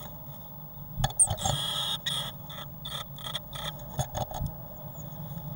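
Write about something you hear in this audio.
Blue tits scuffle and rustle in nesting material inside a nest box.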